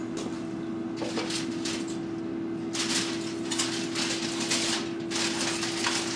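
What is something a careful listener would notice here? Aluminium foil crinkles and rustles as it is handled.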